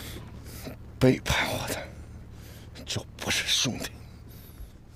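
A man speaks in a low, threatening voice close by.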